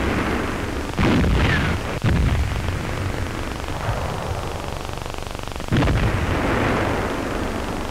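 An artillery gun fires with a heavy bang.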